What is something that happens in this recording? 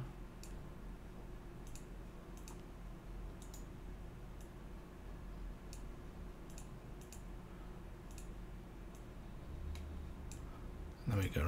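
Soft clicks sound as items are placed in a crafting grid.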